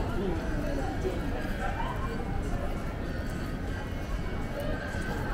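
Voices of passers-by murmur nearby.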